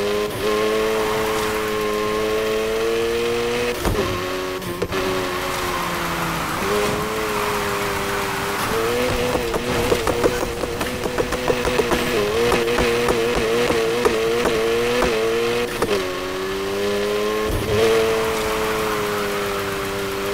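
A car engine roars at high revs, its pitch rising and falling with gear changes.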